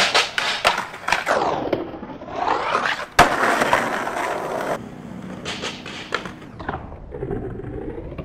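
Skateboard trucks grind along a metal rail.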